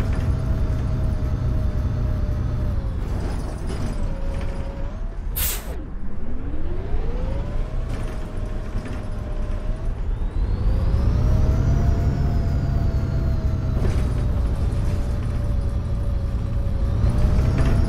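A bus engine hums steadily and rises and falls in pitch as the bus speeds up and slows down.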